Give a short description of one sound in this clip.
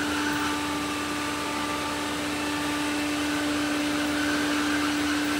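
A robot vacuum hums steadily across a hard floor.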